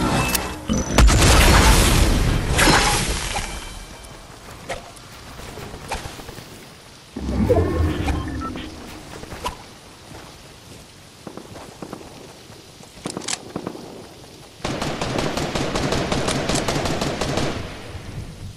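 Building pieces snap into place with loud clattering thuds.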